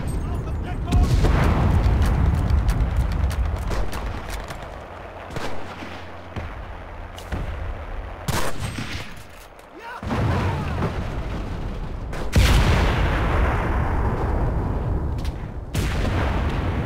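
A rifle fires loud shots that echo away into the distance.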